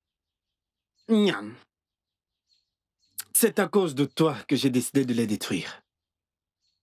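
A younger man speaks earnestly close by.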